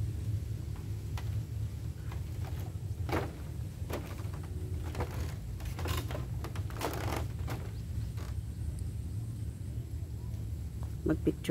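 Footsteps thud and creak on a bamboo footbridge.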